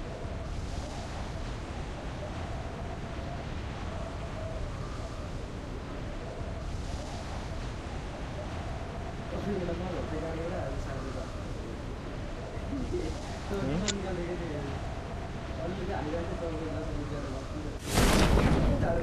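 Wind rushes steadily during a freefall.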